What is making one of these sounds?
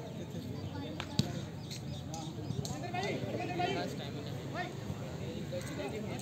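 Young men shout to each other across an open field, far off.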